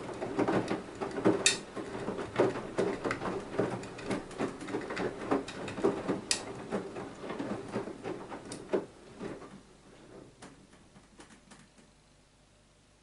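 Wet laundry sloshes and thumps inside a turning washing machine drum.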